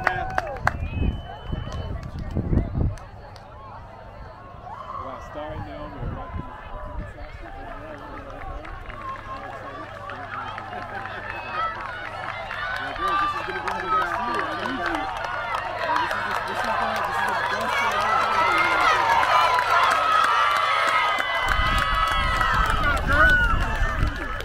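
A crowd outdoors cheers and shouts, growing louder as runners approach.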